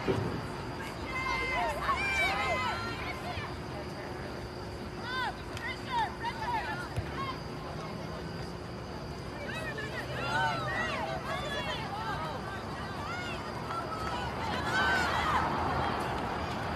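Young women shout to each other across an open field at a distance.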